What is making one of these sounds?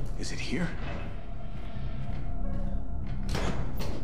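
A metal cabinet door swings open.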